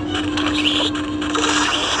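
A magic attack crackles and zaps.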